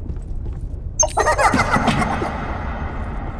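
A metal can clatters down into a vending machine's tray.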